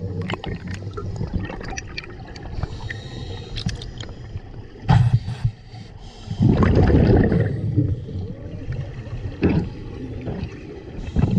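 Scuba bubbles gurgle and rumble underwater.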